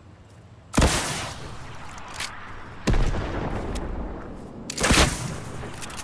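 A rocket launcher fires with loud booming blasts.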